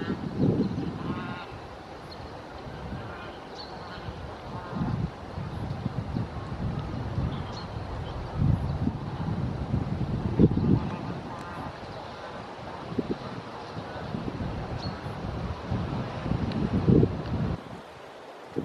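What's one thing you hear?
Wind gusts rumble across the water outdoors.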